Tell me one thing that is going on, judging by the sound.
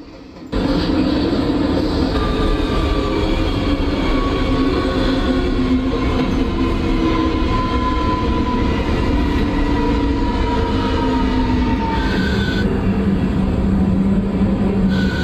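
A subway train rumbles and hums steadily.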